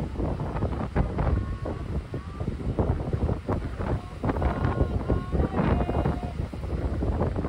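A man shouts with feeling into the wind.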